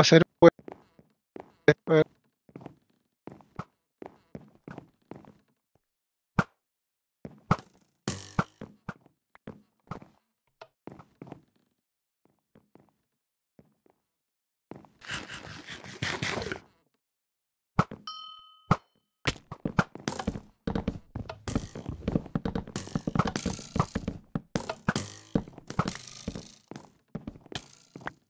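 Blocks clack quickly, one after another, as they are placed.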